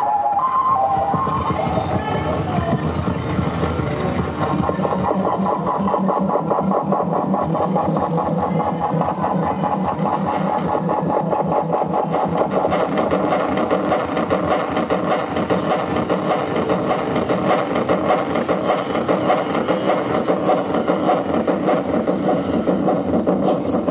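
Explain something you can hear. Buzzing synthesizer tones drone and shift.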